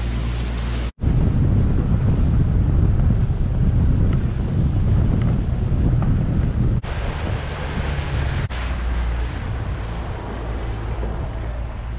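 An outboard motor roars at speed.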